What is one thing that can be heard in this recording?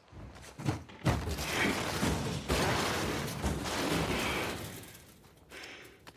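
A heavy wooden cabinet scrapes across the floor.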